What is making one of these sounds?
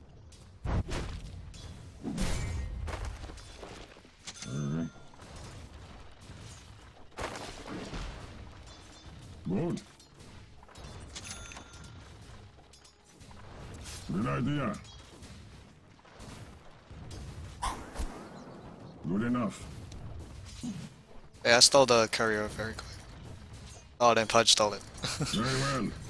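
Short magical whooshes and hits burst out now and then in a game.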